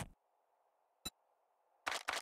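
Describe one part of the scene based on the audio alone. A game menu opens with a short click.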